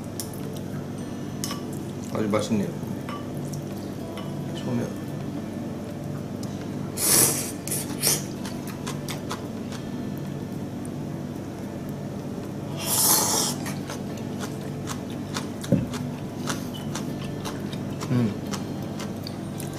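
Chopsticks tap and clink against a bowl.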